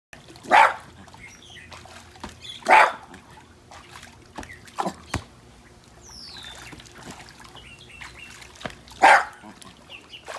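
A dog barks loudly a few times.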